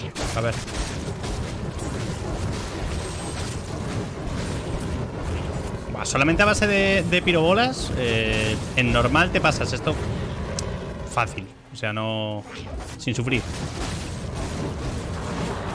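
Fiery spell blasts whoosh and crackle.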